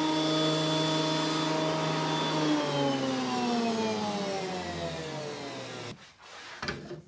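An electric planer motor hums and winds down.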